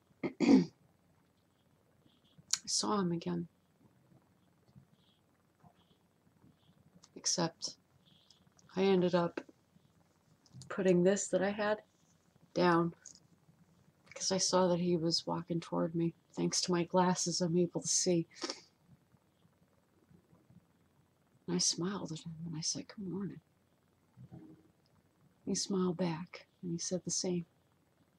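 A young woman talks calmly and closely into a microphone, with pauses.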